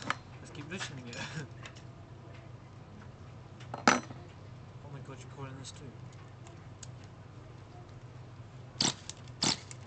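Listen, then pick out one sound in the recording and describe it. A metal tool clicks and scrapes against a small engine.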